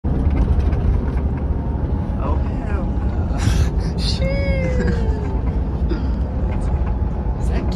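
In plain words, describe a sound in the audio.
A bus engine rumbles steadily inside the cabin.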